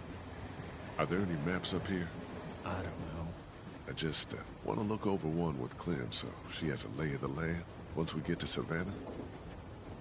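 A man speaks hesitantly and calmly, close by.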